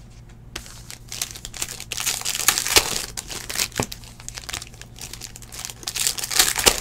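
A foil wrapper crinkles as a pack is torn open.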